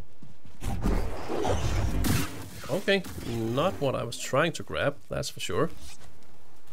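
A lightsaber swooshes through the air in quick swings.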